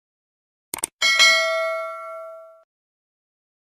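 A bell chimes brightly and rings out.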